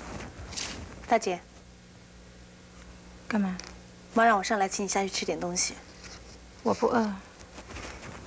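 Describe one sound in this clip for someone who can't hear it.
A young woman speaks calmly in short phrases, close by.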